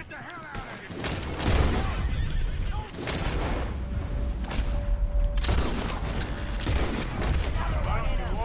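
Gunshots crack loudly, one after another.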